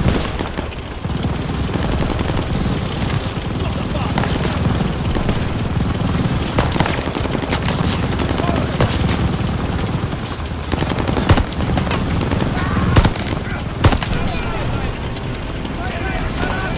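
A heavy armoured vehicle's engine rumbles low and steady.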